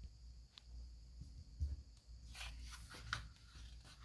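A sheet of paper rustles as hands pick it up.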